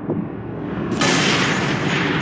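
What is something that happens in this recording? A pistol fires with a sharp, loud bang.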